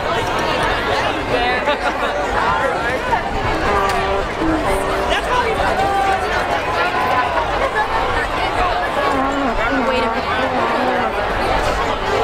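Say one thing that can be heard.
Young men and women shout and laugh nearby.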